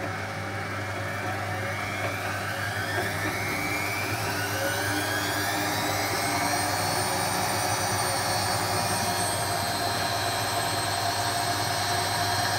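A washing machine's motor whines, rising in pitch as the drum speeds up.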